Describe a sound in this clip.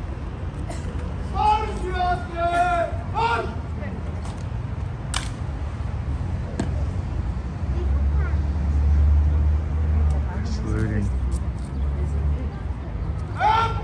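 A crowd murmurs in the distance.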